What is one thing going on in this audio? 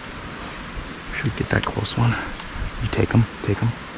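Ducks splash and flap their wings as they take off from the water.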